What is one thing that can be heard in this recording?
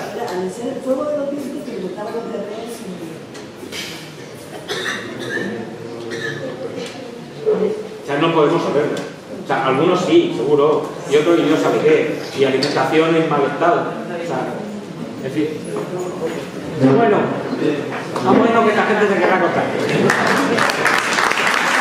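A middle-aged man speaks with animation.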